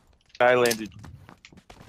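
A man exclaims briefly into a close microphone.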